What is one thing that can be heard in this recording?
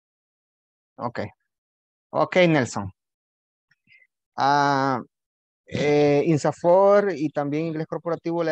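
A young man speaks calmly over an online call.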